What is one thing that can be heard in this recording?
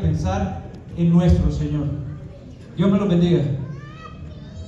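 A man speaks loudly close by in a large echoing hall.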